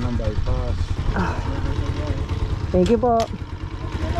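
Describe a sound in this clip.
A motorbike engine idles.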